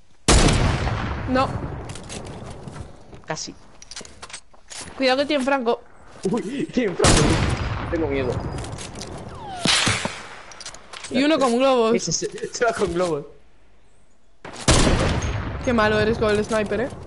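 A rifle fires loud single shots that ring out and fade.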